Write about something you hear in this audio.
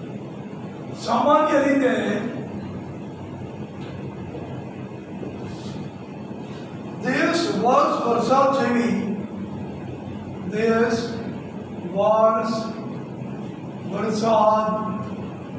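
An elderly man speaks slowly and calmly in short phrases.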